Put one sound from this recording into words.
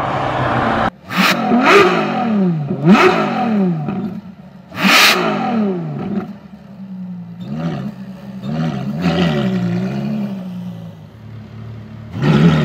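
A sports car engine revs up and down repeatedly, close by.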